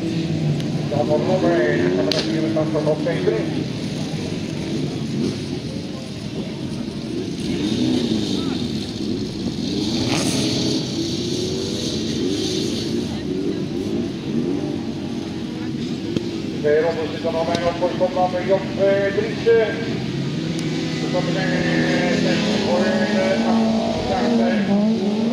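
Racing car engines roar and rev outdoors.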